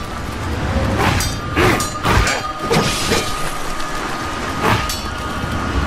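Swords clash and ring in a flurry of quick strikes.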